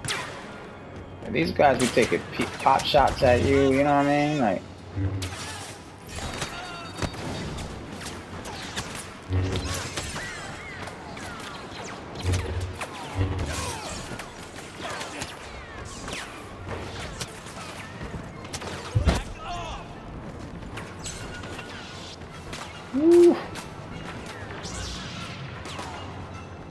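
A lightsaber hums and whooshes as it swings.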